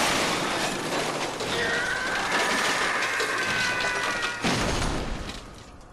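Glass shatters and wood splinters.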